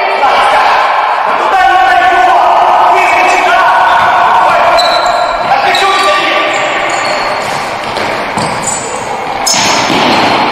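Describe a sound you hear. Sneakers squeak on a wooden floor in an echoing hall.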